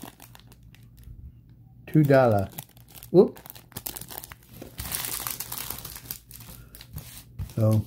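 Plastic wrapping crinkles and rustles as card packs are handled.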